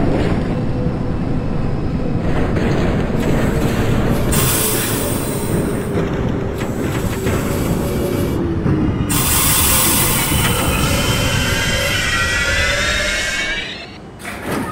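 A train rumbles loudly along the tracks and slows to a stop.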